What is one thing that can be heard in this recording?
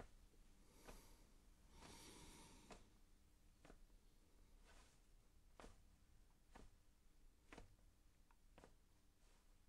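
Footsteps tap softly across a hard floor.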